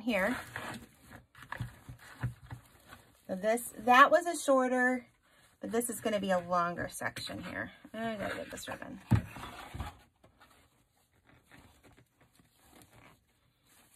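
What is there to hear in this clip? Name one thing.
Plastic mesh ribbon rustles and crinkles as hands shape it.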